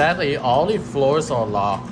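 A finger presses an elevator button with a soft click.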